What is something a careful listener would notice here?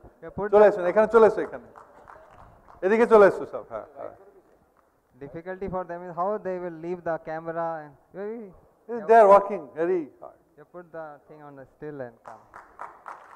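A man speaks with animation through a microphone and loudspeakers in a large echoing hall.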